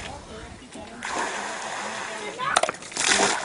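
Water pours from a bucket into a hand pump.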